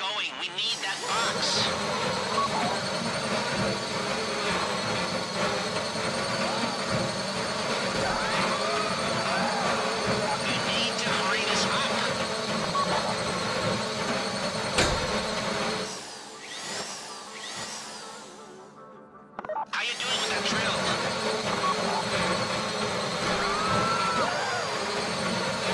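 A power drill whirs and grinds steadily into metal.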